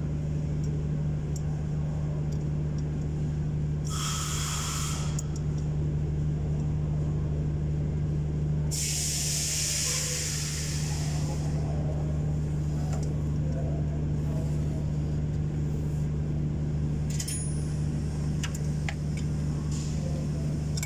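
An engine cooling fan clicks softly as a hand turns it.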